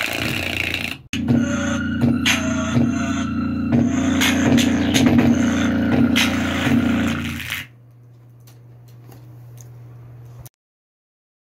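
A small loudspeaker plays loud, booming music with a thumping beat, then drops to a low hum.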